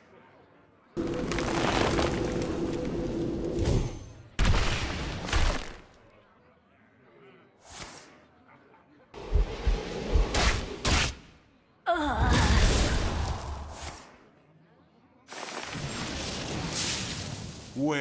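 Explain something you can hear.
Magical game sound effects burst and whoosh as cards are played.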